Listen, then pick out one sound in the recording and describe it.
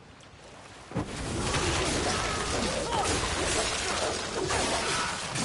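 Blades whoosh and clash in a fight.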